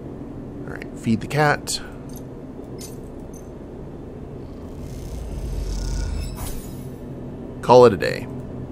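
A game menu sounds a short electronic chime.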